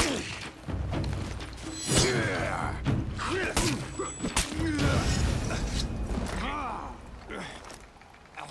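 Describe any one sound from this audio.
A warrior grunts and shouts while fighting.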